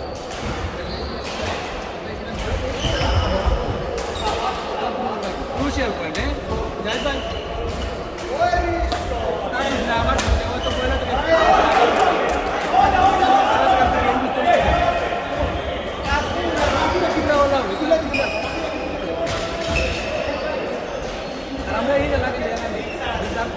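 Shoes squeak on a sports hall floor.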